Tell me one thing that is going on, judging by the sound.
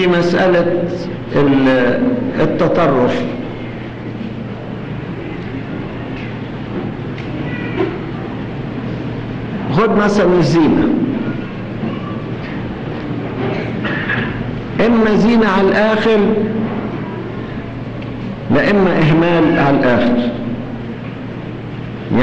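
An elderly man speaks slowly and forcefully into a microphone, with long pauses.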